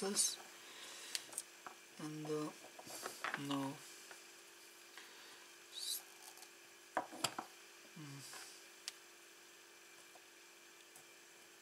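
Small metal tools clink and tap on a wooden table.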